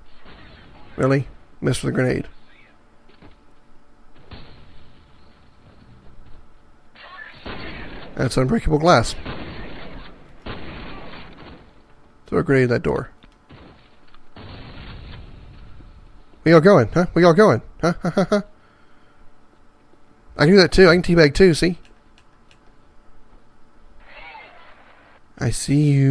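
A man talks with animation into a headset microphone, close up.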